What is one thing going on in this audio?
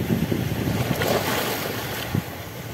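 A wave crashes against a rock and sprays up.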